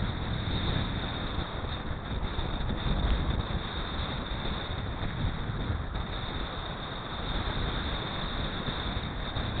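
Wind rushes loudly past a microphone.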